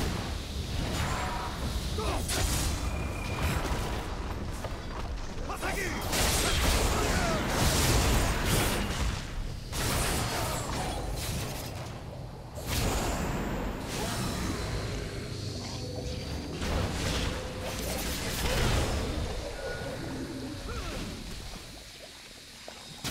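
Spell and weapon sound effects crash and burst in a video game battle.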